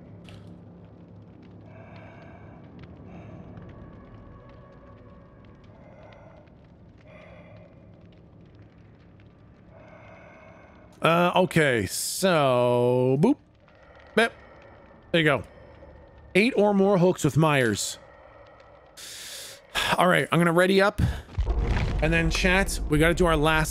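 A young man talks into a close microphone, first quietly and then loudly and with animation.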